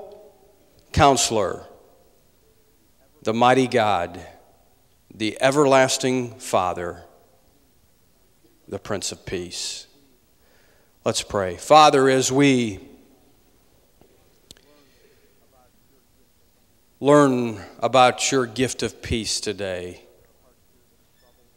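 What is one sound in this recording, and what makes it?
A man reads aloud in pauses through a microphone in a large hall.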